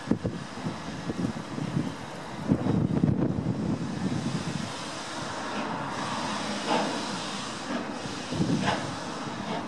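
A steam locomotive chuffs steadily as it pulls away.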